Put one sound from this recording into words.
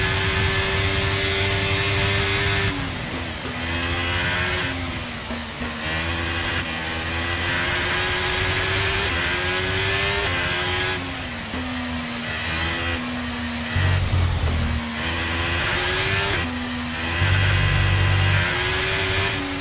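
A racing car engine screams at high revs, dropping in pitch as it shifts down and rising again as it speeds up.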